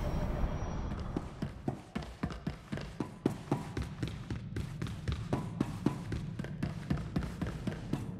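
Footsteps run quickly on a metal floor.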